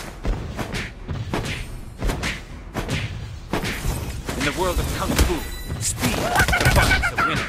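Sword strikes and spell blasts hit again and again in quick bursts.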